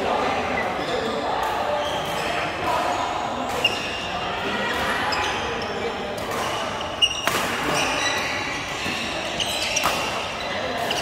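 Badminton rackets smack shuttlecocks with sharp pops in a large echoing hall.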